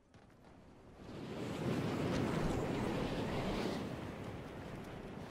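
Wind rushes loudly past a game character skydiving.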